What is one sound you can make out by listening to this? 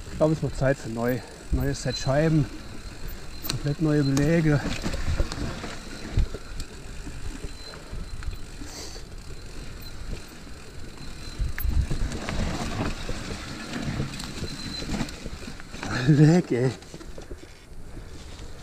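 Bicycle tyres crunch and rumble over a dirt trail.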